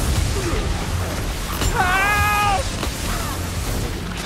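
A spell bursts with a hissing whoosh.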